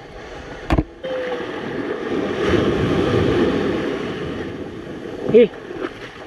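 Waves crash and wash up onto the shore.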